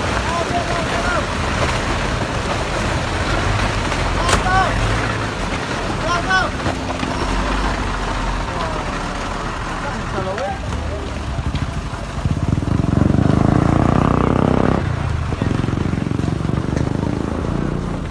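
Rocks and earth tumble down a slope with a steady rushing rumble.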